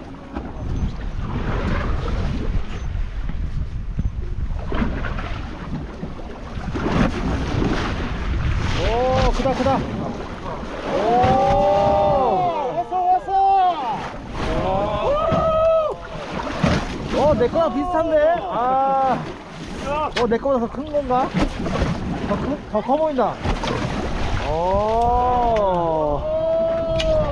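Waves splash against the side of a boat.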